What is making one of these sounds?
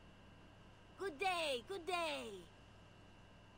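A man exclaims loudly into a close microphone.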